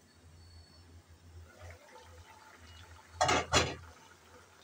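A glass lid is lifted off a metal pot with a clink.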